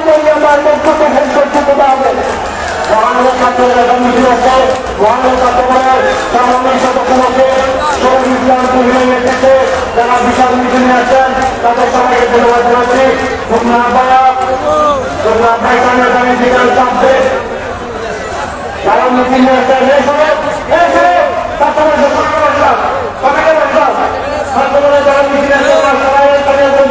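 A large crowd of men chants slogans loudly in unison outdoors.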